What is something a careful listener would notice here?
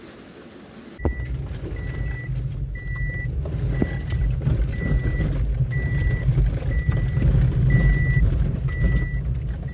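A car drives over a wet dirt road, heard from inside.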